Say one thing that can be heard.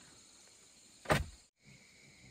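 A wooden pole thuds into the ground.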